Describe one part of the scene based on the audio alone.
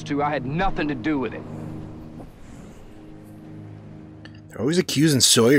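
A man speaks tensely in a film soundtrack.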